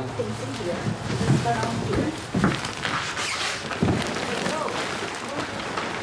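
Plastic shopping bags rustle as they are carried.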